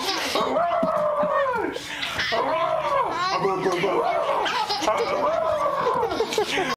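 Young babies laugh and squeal excitedly close by.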